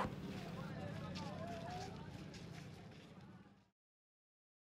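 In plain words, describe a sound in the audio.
A busy outdoor market crowd chatters with many voices.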